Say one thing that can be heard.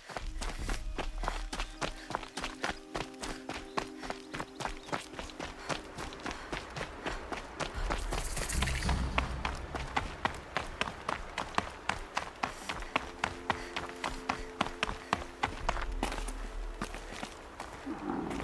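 Quick footsteps run steadily over dirt and stone.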